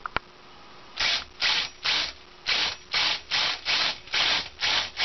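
A cordless drill whirs in short, repeated bursts.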